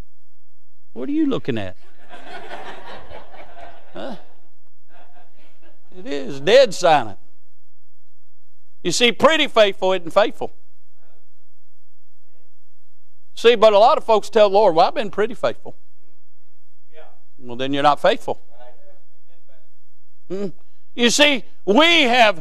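A man preaches with animation into a microphone, pausing between phrases.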